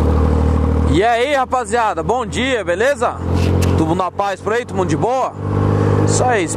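A motorcycle engine revs up and down again and again.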